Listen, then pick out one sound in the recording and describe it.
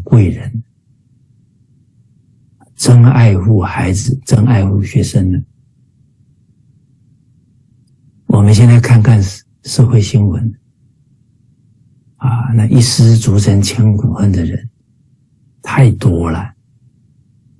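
A middle-aged man speaks calmly and earnestly through a microphone on an online call, with pauses.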